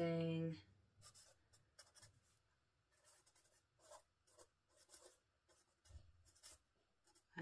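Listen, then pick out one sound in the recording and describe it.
A pen scratches softly on paper as someone writes.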